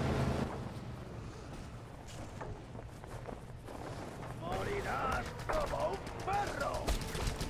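Wind rushes steadily past a parachute in flight.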